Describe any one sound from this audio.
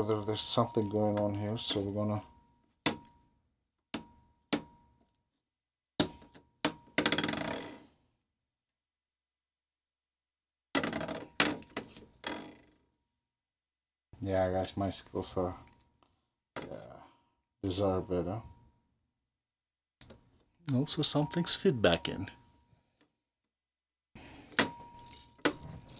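Fingers handle and click at a reel-to-reel tape machine.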